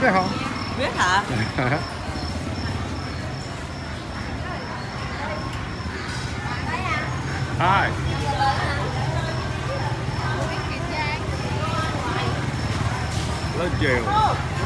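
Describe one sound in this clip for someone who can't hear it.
Voices of several people chatter in the background.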